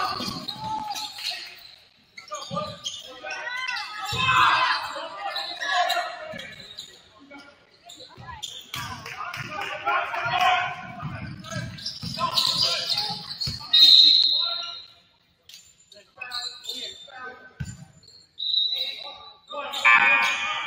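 Players call out to each other in an echoing gym.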